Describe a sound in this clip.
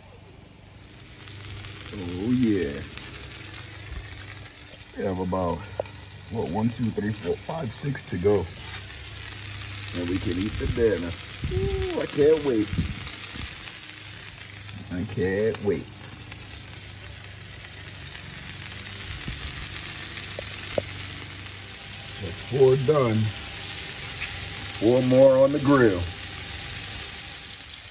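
Meat patties sizzle steadily on a hot griddle.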